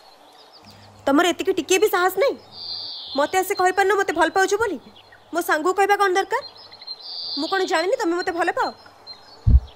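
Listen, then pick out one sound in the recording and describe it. A young woman speaks earnestly nearby.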